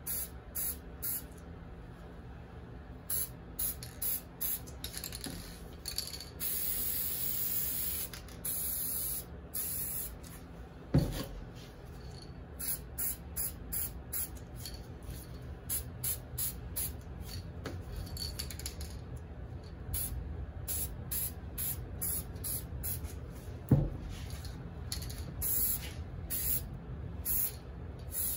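An aerosol spray can hisses in short bursts.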